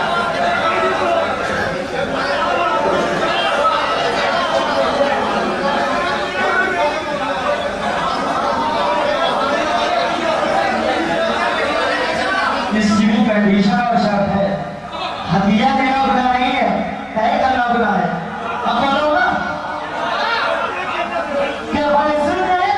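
A young man recites with animation through a loudspeaker.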